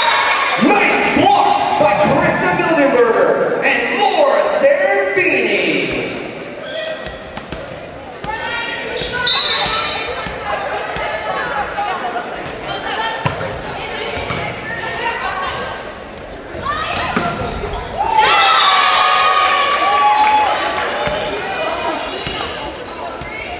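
Young women shout and cheer together.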